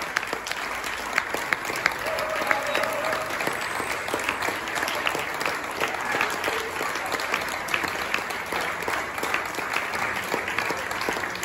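An audience claps and applauds steadily.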